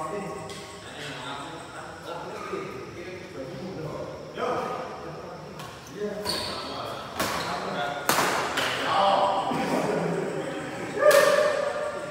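Rackets smack a shuttlecock back and forth in an echoing hall.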